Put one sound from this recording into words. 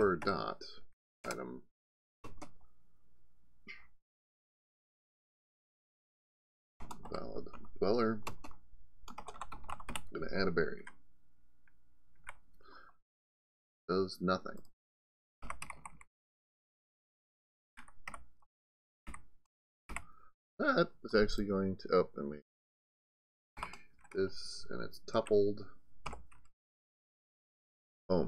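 A middle-aged man speaks calmly and closely into a microphone, in short bursts with pauses.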